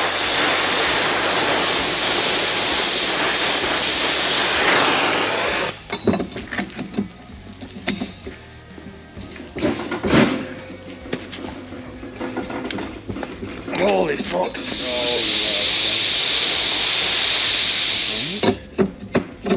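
A gas torch roars steadily.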